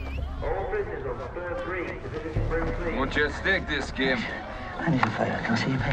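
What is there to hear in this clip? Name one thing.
Several men talk over one another outdoors.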